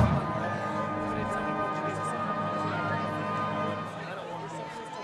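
A marching band plays a loud, sustained brass chord outdoors.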